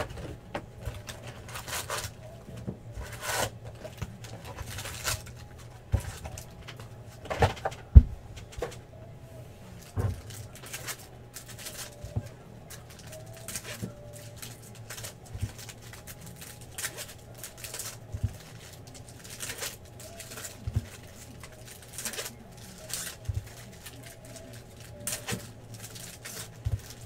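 Plastic card packs rustle and crinkle as hands handle them.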